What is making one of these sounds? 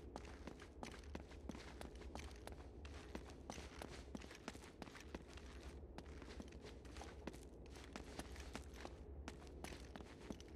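Footsteps crunch on a stone floor at a quick pace.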